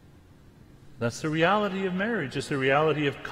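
An elderly man speaks calmly into a microphone in a reverberant hall.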